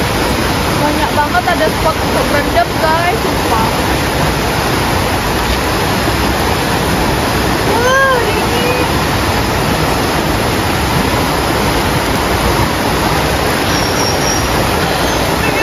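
A young woman calls out excitedly nearby.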